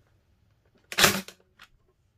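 A staple gun fires with a sharp snap.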